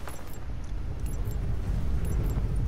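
Wind rushes loudly past a falling figure.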